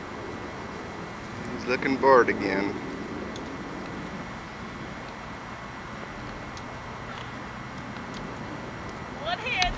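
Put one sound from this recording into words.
A horse's hooves thud softly on grass.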